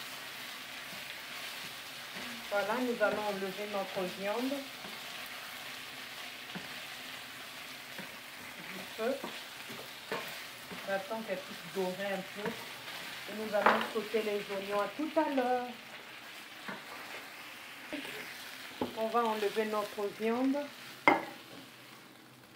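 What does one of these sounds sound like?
Meat sizzles steadily in a hot frying pan.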